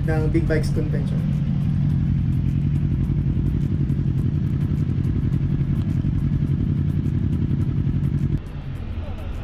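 Motorcycle engines idle with a low, steady rumble.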